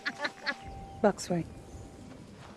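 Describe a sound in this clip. A woman calls out a short command.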